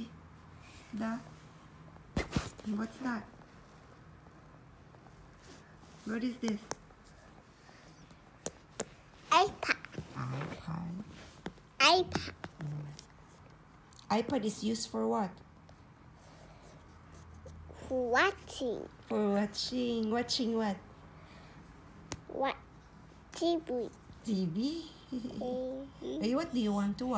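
A small child talks and babbles close by.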